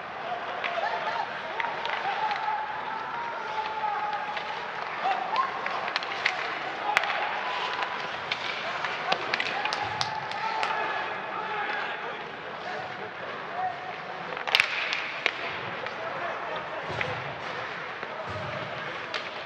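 Ice skates scrape and hiss across the ice.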